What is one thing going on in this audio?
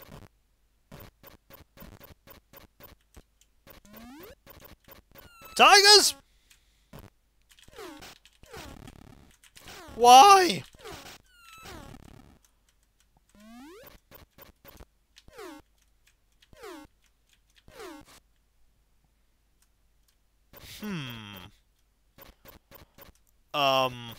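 Retro video game sound effects beep and sweep in short bursts.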